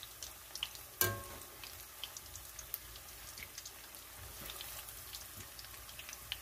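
A metal skimmer clinks against a frying pan.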